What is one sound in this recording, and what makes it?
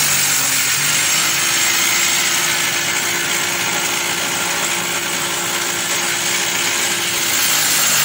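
A wood planer machine whirs and shaves a plank with a loud, steady rasping noise.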